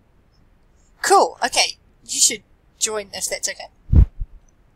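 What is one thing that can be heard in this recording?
A young man speaks briefly over an online call, with short pauses.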